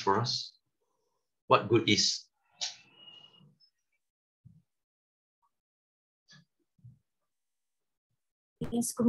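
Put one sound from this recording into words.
A man speaks calmly through an online call, in short bursts with pauses.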